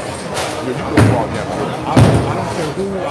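Bowling pins crash with a clatter.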